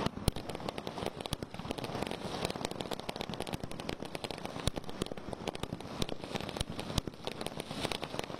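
Fireworks crackle and fizzle steadily.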